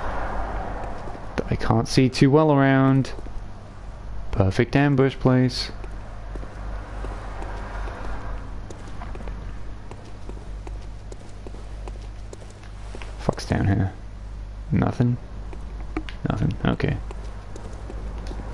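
Footsteps tread on stone paving.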